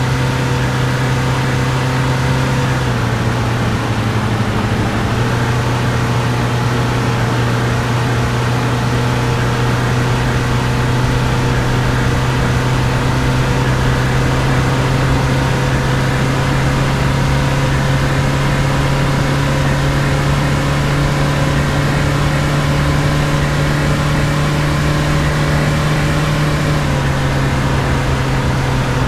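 A truck engine hums steadily, shifting pitch as it changes gear.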